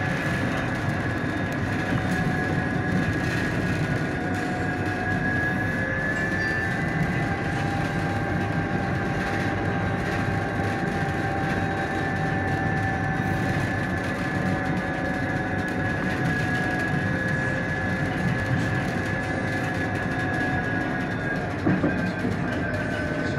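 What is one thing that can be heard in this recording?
A vehicle's engine hums steadily while driving along a road.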